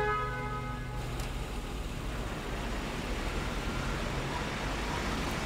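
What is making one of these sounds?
A car engine hums as the car drives past.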